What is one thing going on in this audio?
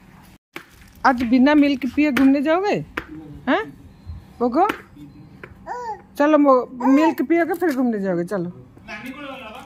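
A toddler babbles in a high voice close by.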